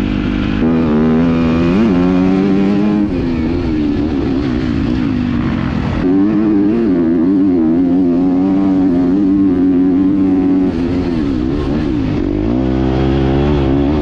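A dirt bike engine revs loudly up close, rising and falling as the rider shifts gears.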